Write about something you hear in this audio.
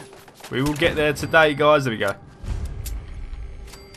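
A pistol is reloaded with metallic clicks.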